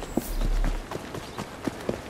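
A horse-drawn carriage rattles along cobblestones.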